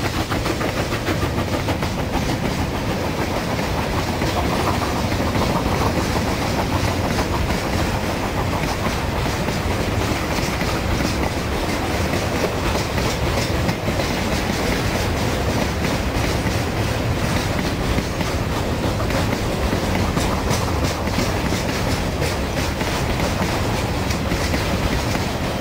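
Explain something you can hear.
A long freight train rumbles past, its wheels clattering steadily on the rails.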